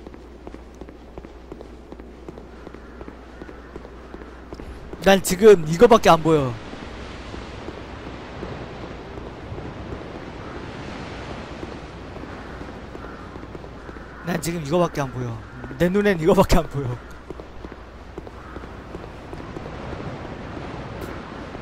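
An armoured figure's footsteps run across a stone floor.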